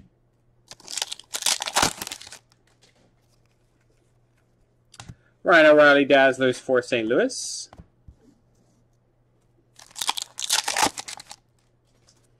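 A foil wrapper crinkles and tears open.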